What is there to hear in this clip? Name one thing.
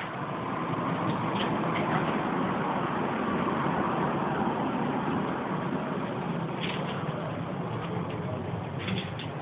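A small dog's claws patter and click on a wooden floor.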